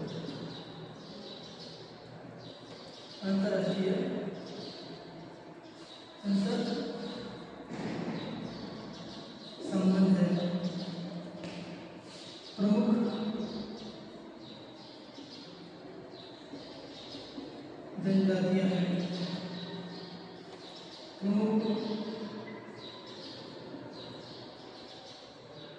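A man speaks loudly and clearly nearby, in short bursts with pauses, in a slightly echoing room.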